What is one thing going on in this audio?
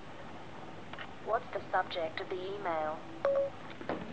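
A phone's synthetic voice speaks calmly through a small speaker.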